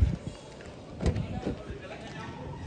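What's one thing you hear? A car door clicks open.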